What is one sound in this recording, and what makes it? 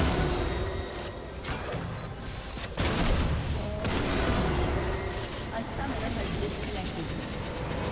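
Video game spell effects crackle, whoosh and burst during a fight.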